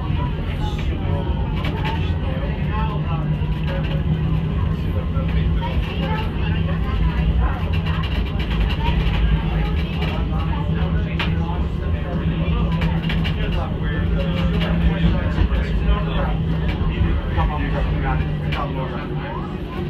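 Traffic rumbles along a busy road outdoors.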